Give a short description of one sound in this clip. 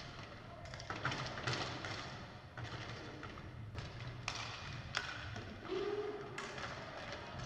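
Sticks clack sharply against a ball.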